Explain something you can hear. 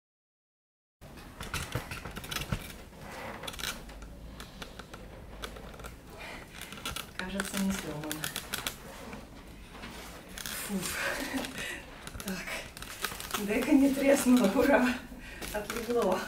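A padded fabric case rustles and scrapes against cardboard as it is lifted.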